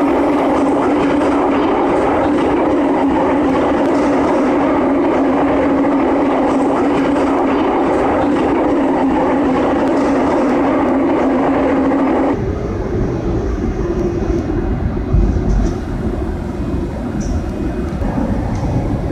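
A train roars steadily through a tunnel, its wheels rumbling on the rails.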